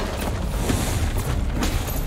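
A crate crashes and clatters apart.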